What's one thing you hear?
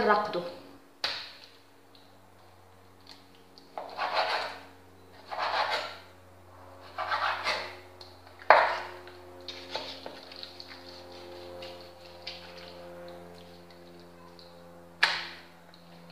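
A knife taps against a wooden board.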